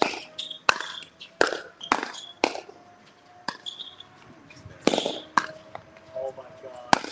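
Paddles strike a plastic ball with sharp pops, outdoors.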